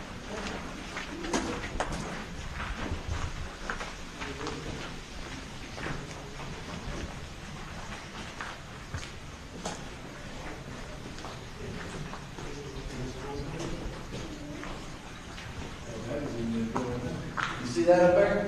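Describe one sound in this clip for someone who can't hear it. Footsteps crunch and scuff along a hard path in an echoing tunnel.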